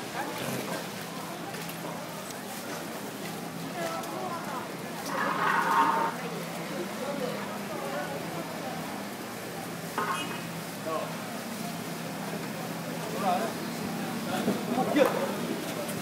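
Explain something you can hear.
A crowd of men and women chatters nearby and in the distance.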